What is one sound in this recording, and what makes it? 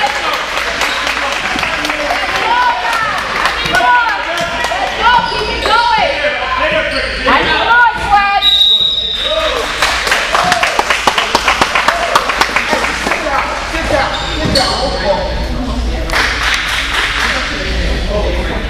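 Children and adults chatter and call out across the echoing gym.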